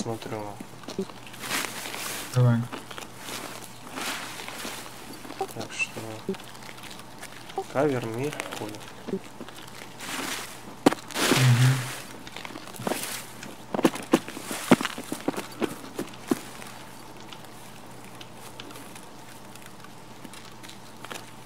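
Branches and leaves brush and rustle against a passing body.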